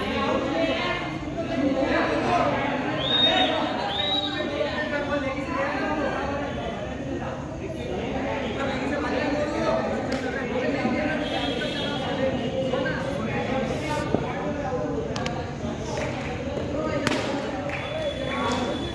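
Several men talk and call out at a distance.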